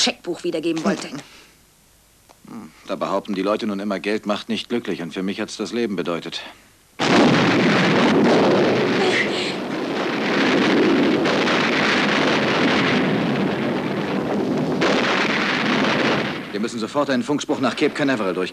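A woman speaks quietly close by.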